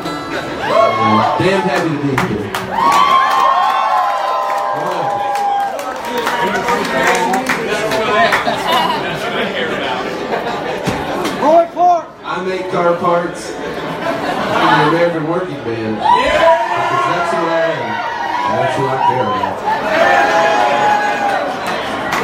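A man sings into a microphone through loudspeakers in an echoing hall.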